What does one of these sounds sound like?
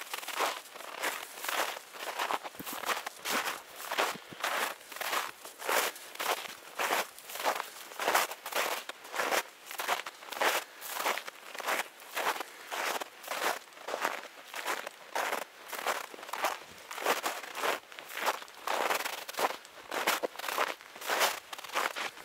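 Footsteps crunch steadily through snow, close by.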